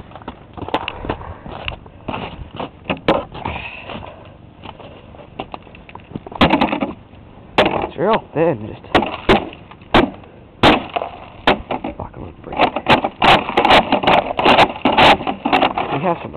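A plastic shovel scrapes and knocks on snow and pavement.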